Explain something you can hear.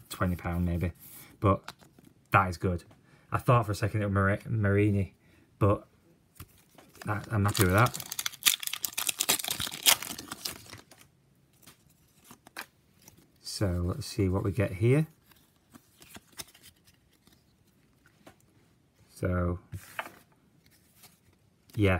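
Trading cards shuffle and slide against each other.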